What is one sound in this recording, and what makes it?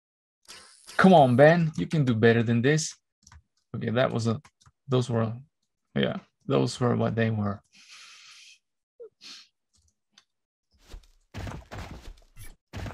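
A young man talks with animation into a microphone, close up.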